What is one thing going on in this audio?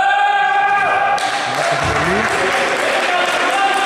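A basketball thuds on a wooden court in a large echoing hall.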